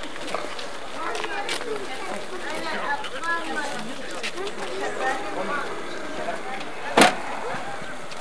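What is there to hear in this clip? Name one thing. Several adults chat outdoors, men and women talking over one another.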